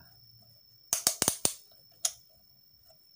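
A rotary switch clicks sharply as it is turned.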